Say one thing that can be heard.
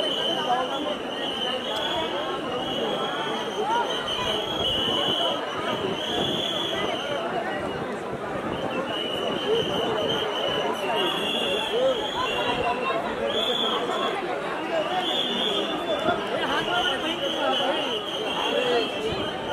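A large crowd of men and women chatters and murmurs all around.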